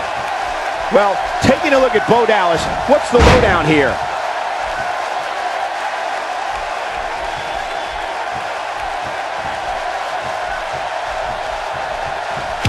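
A large crowd cheers and murmurs steadily.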